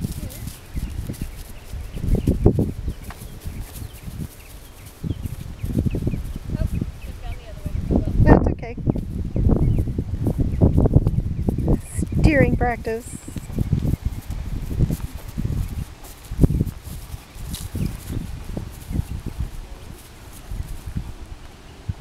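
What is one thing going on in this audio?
A horse's hooves thud softly on grass as it walks.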